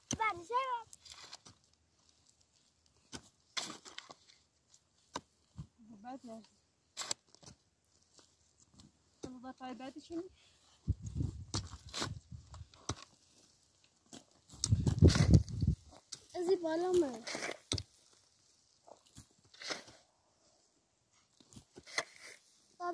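A hoe chops into the ground.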